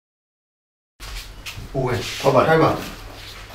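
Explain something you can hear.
A man speaks with animation and close up.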